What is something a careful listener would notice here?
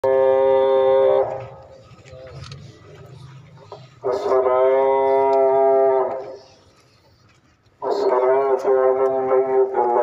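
An elderly man chants long, drawn-out calls through a loudspeaker, pausing between them.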